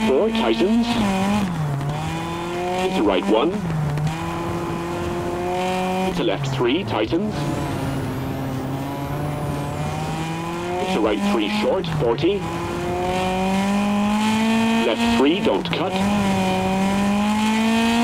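A rally car engine roars and revs up and down as gears shift.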